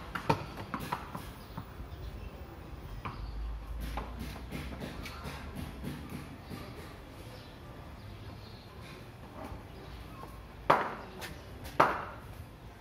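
A ball knocks sharply on hard paving outdoors.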